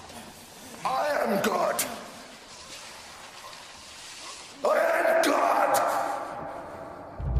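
A man shouts angrily and forcefully close by.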